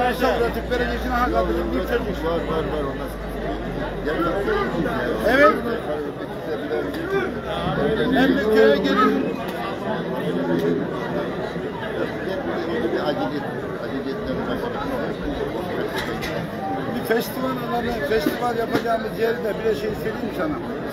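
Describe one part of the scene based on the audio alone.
Men in the crowd shout and cheer now and then.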